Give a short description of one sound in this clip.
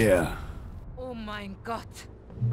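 A woman speaks quietly in shock.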